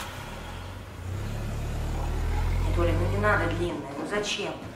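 A car engine starts and runs with a low hum.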